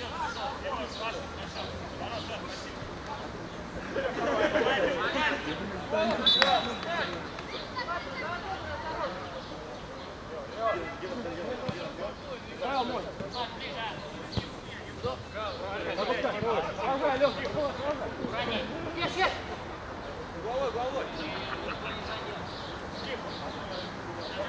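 Several men shout and call out outdoors across an open pitch.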